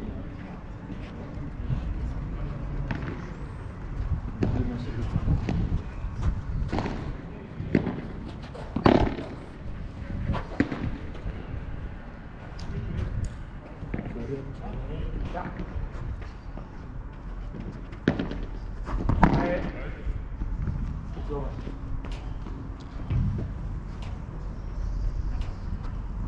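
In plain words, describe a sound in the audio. Padel rackets strike a ball with sharp pops.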